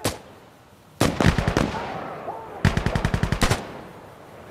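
A rifle fires bursts of rapid shots that echo away.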